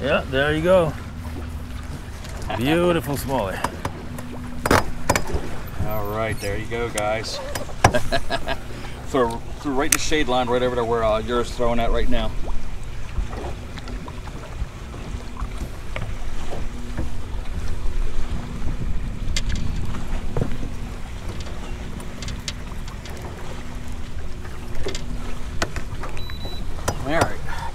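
A boat's engine hums steadily.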